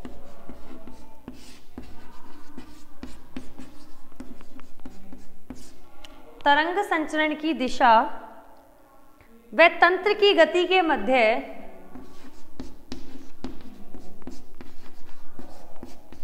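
A young woman speaks in a teaching tone nearby.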